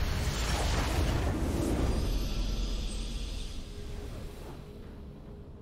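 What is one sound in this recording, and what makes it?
A loud, triumphant game fanfare blares and then fades away.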